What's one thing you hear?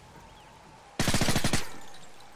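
Gunfire rattles in a short, rapid burst.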